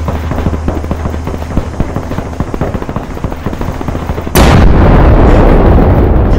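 A vehicle engine rumbles and rattles steadily.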